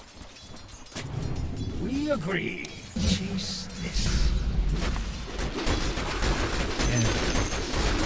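Weapons clash and magic effects burst in a busy battle.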